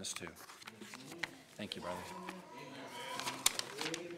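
Pages of a book rustle as a man picks it up.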